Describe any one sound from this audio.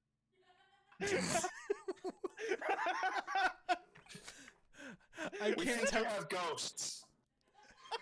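Several young men and women laugh loudly over an online call.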